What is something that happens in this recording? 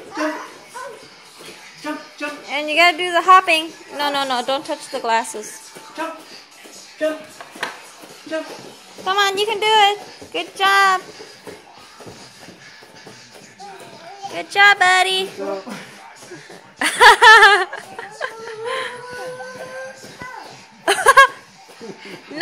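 A toddler squeals and babbles excitedly close by.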